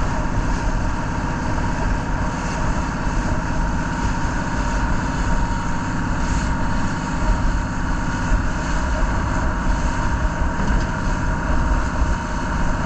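A boat engine drones steadily throughout.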